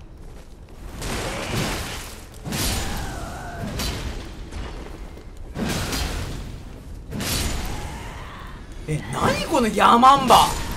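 A sword swings and slashes with heavy whooshing strikes.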